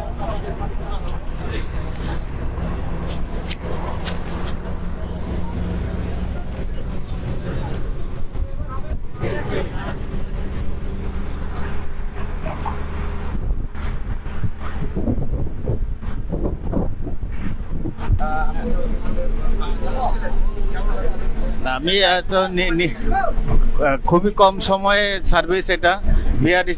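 A bus engine rumbles steadily while driving on a road.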